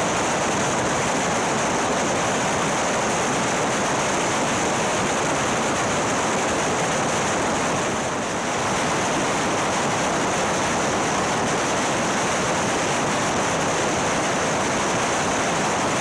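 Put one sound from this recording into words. Wind roars loudly and steadily against a moving motorcycle.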